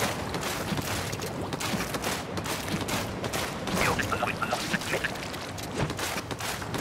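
Thick liquid splatters and squelches in quick bursts.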